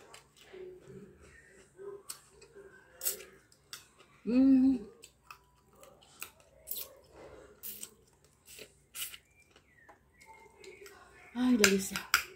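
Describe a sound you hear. A woman chews food noisily close to a microphone.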